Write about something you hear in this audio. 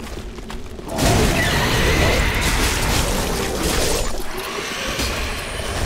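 A loud roaring burst of fire rumbles and crackles.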